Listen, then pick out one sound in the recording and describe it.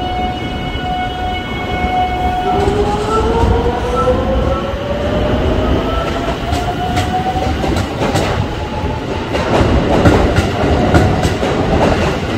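Train wheels rumble and clack on the rails.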